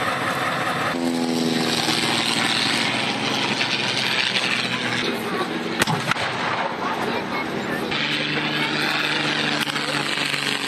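A propeller plane drones overhead.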